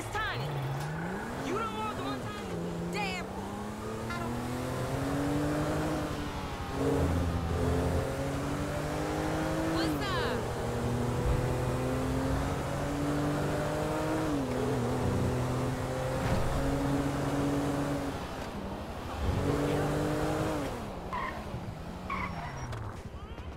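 Tyres squeal on pavement during sharp turns.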